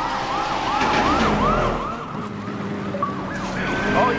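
A police siren wails in rapid, repeating sweeps.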